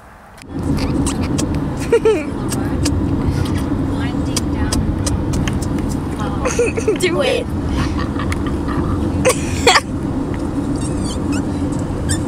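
A young boy talks casually up close.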